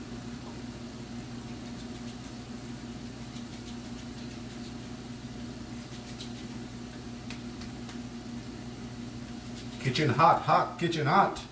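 Hands pat and slap dough softly.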